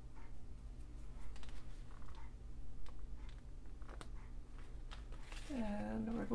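Paper rustles and crinkles as hands smooth it down.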